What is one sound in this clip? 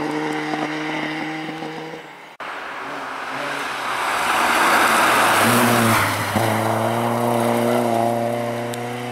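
A rally car engine roars at high revs as the car speeds past.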